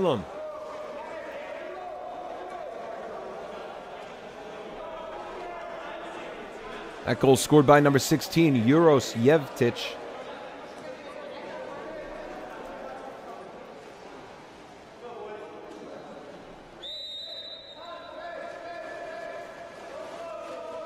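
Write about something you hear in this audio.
Swimmers splash and churn the water, echoing around a large hall.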